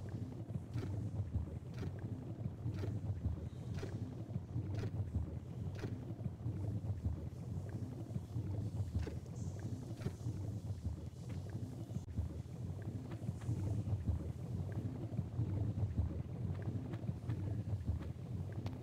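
Lava rumbles with a low, steady roar.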